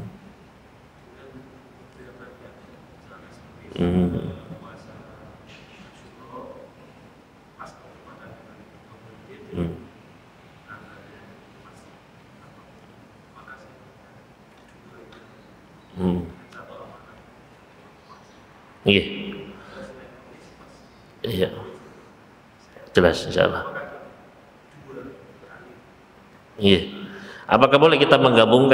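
A young man speaks calmly into a microphone in a reverberant room.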